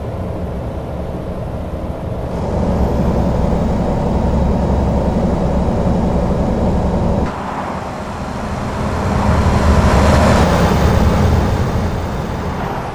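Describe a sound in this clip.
A truck engine rumbles steadily at cruising speed.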